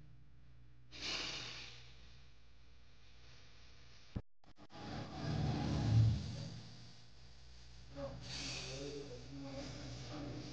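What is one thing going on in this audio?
A man breathes out forcefully close by.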